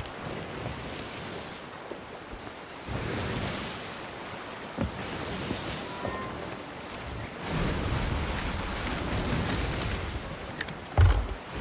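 Ocean waves wash and roll around a wooden ship.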